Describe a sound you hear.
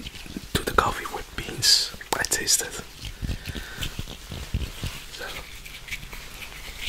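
Spiky fruit skins rustle and scratch against a microphone.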